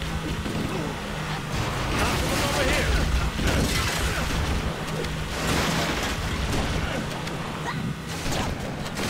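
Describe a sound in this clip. Small vehicle engines hum and whine steadily.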